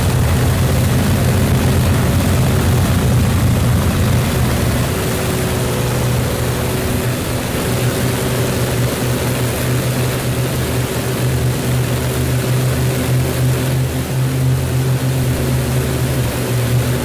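Propeller aircraft engines drone steadily.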